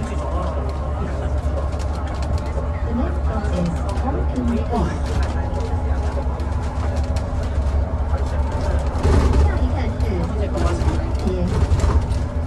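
A bus engine hums steadily from inside the bus as it drives.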